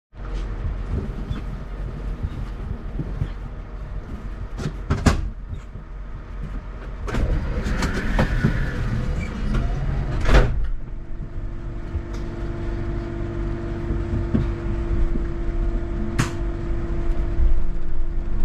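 A bus engine idles with a steady low rumble outdoors.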